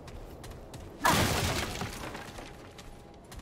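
Wooden planks crash and clatter as a barricade breaks apart.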